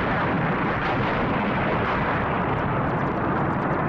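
A huge explosion roars and booms.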